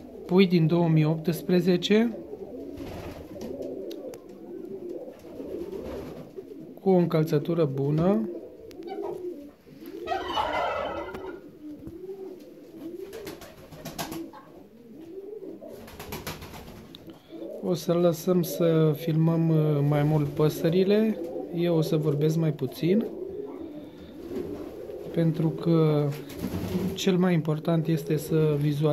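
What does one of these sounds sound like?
Pigeons coo in deep, rolling calls close by, again and again.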